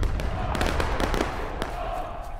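A cannon fires with a deep boom that rumbles away.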